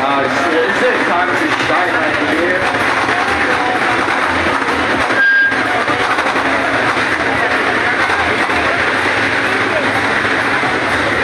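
A large outdoor crowd of men shouts and chants loudly and close by.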